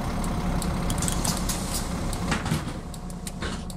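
Bus doors close with a hiss of air.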